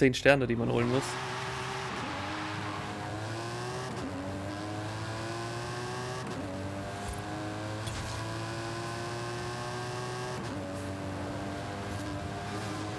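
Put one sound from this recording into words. A racing car engine revs hard, rising in pitch and dropping back with each gear change.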